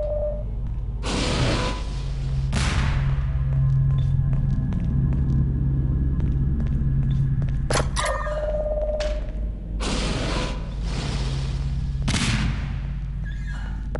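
A science-fiction gun fires several whooshing, crackling bursts.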